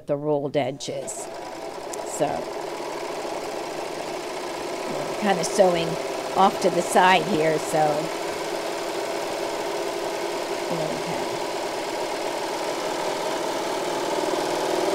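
A serger sewing machine whirs steadily.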